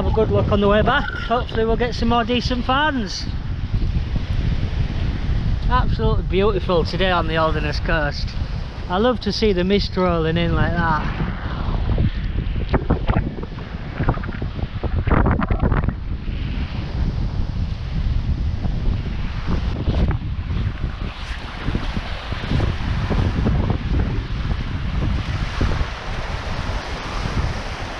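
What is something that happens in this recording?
Strong wind blows and rumbles against the microphone outdoors.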